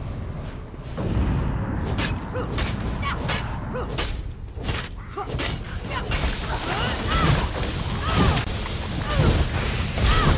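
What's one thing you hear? A giant creature growls and hisses.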